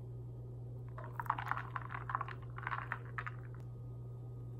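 Milk pours and splashes into a cup.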